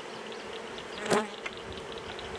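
A wooden hive box knocks once as it is set down.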